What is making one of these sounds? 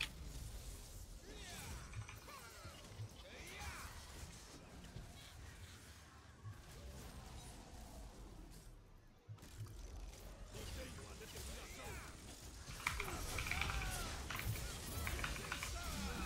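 A young man talks with animation into a nearby microphone.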